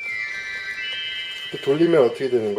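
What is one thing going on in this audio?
A bright electronic chime rings out and fades.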